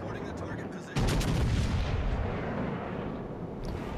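Heavy naval guns fire with a deep boom that rumbles away.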